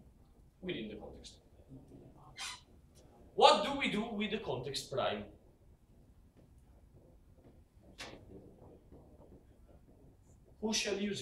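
A young man speaks nearby, calmly.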